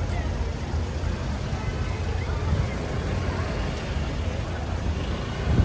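Tyres swish past on a wet road.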